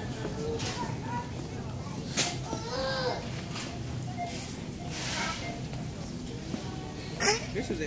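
A shopping cart rattles as it rolls over a hard floor.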